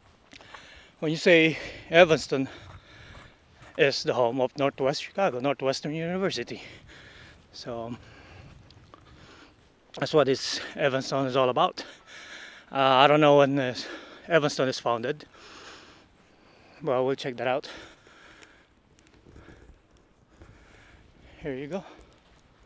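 A middle-aged man talks calmly, close up, in pauses.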